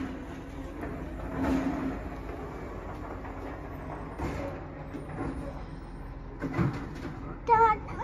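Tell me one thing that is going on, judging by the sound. A garbage truck's hydraulic arm whines as it moves.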